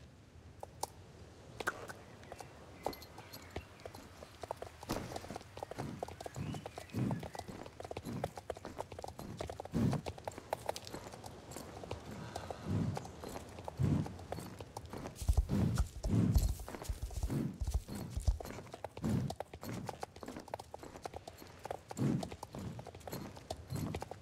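A horse's hooves thud in a steady trot.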